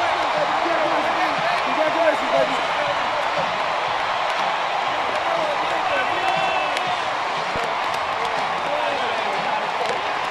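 Players clap hands in high fives.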